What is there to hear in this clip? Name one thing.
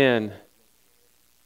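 A man's voice rings out briefly through a microphone in a large room.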